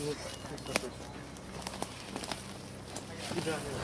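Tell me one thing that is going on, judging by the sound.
Leafy plants rustle as a man pulls through them.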